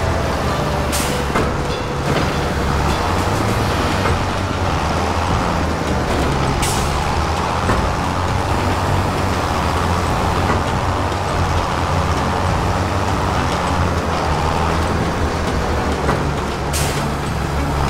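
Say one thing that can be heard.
A bale loader arm clunks as it lifts a round bale onto a trailer.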